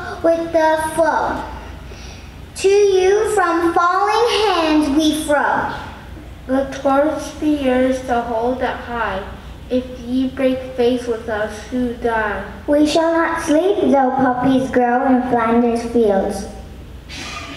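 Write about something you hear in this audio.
A children's choir sings together in a large echoing hall.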